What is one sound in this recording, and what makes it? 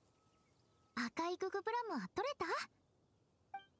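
A young girl speaks brightly.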